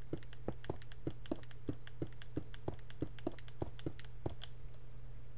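Footsteps tread quickly and steadily on grass.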